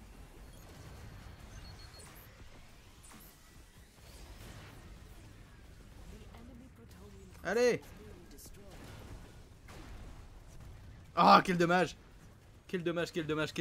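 Energy weapons fire with sharp zaps.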